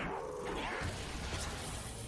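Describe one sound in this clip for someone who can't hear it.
A burst of energy whooshes and crackles.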